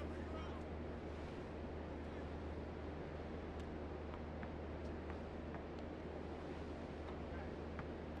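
Sneakers squeak on a basketball court.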